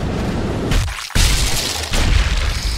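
A bullet strikes a body with a heavy thud.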